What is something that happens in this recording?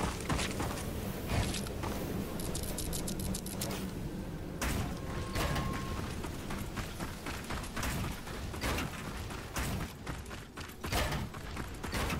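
Building pieces snap into place with sharp clattering knocks.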